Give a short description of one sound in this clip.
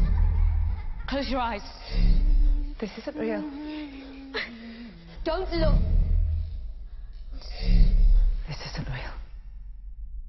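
A child sings softly nearby.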